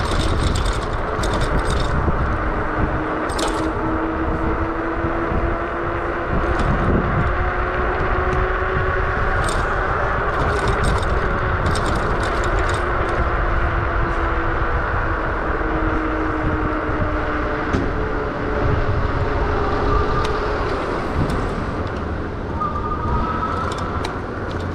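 Wind buffets loudly against a moving rider.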